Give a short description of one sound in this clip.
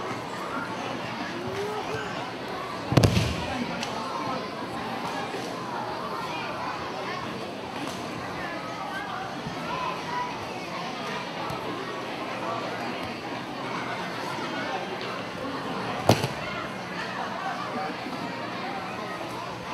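A crowd of people chatters throughout in a large echoing hall.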